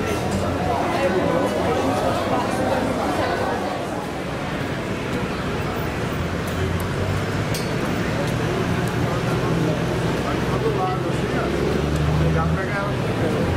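A crowd of people chatter in the distance outdoors.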